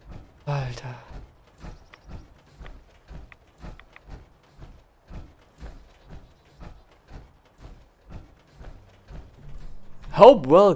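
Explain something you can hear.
Heavy metal footsteps thud at an even pace.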